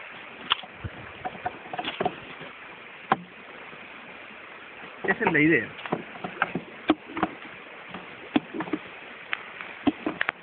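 Wooden hive frames knock and clatter.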